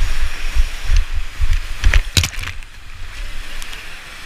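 Water splashes hard against a kayak.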